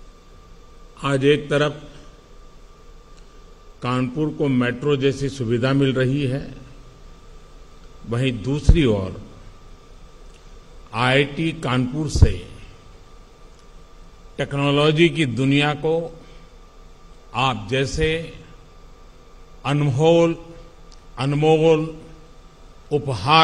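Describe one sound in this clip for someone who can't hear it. An elderly man speaks slowly and forcefully into a microphone, with pauses between phrases.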